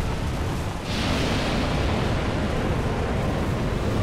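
A dragon's fiery breath roars in a loud rushing blast.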